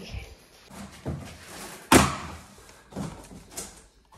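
A cardboard box is thumped and scraped.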